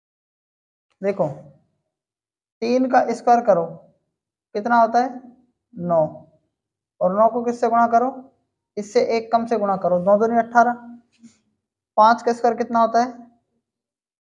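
A man explains calmly, close to a microphone, in short bursts.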